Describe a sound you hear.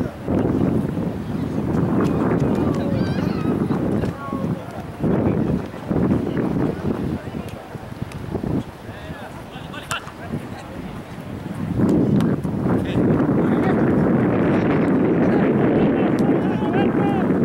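Wind rumbles loudly outdoors in gusts.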